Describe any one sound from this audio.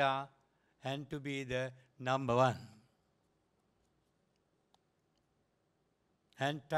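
An elderly man speaks slowly and formally through a microphone and loudspeakers.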